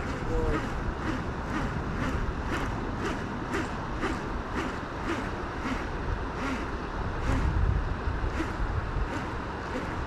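A fishing reel clicks steadily as its line is wound in.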